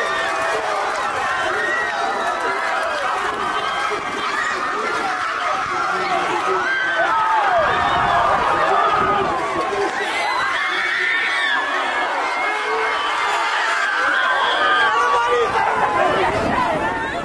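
Young men and women yell and whoop close by.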